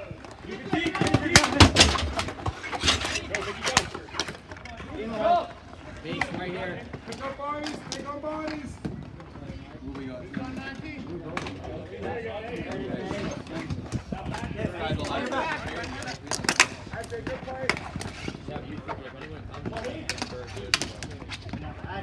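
Hockey sticks clack against a ball and each other on a hard outdoor court.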